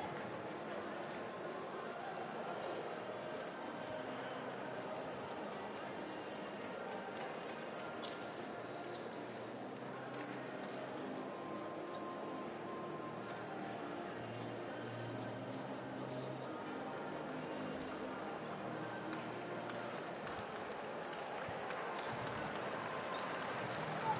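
A crowd murmurs and chatters throughout a large echoing arena.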